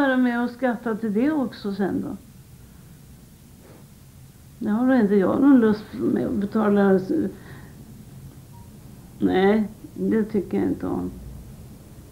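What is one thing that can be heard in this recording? An elderly woman speaks slowly and quietly, close by, in short phrases.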